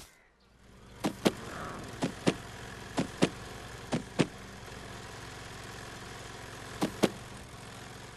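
Footsteps knock on hollow wooden boards.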